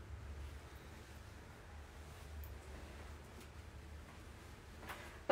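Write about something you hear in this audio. Gloved hands softly rub skin.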